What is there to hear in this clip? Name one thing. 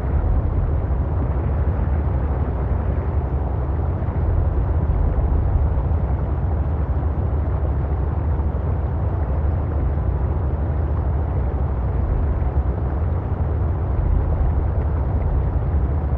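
An underwater propeller motor hums steadily with a low rush of water.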